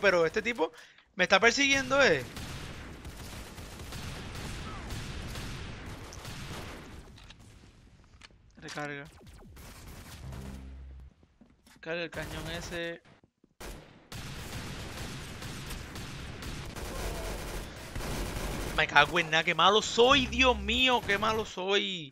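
A handgun fires in sharp single shots.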